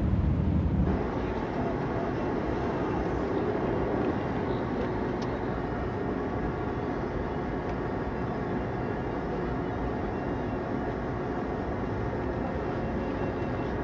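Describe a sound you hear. A car engine runs at low speed in slow traffic.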